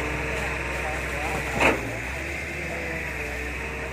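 Wet mud slumps from an excavator bucket onto a pile.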